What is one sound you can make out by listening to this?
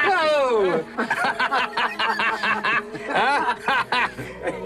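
An older man laughs loudly.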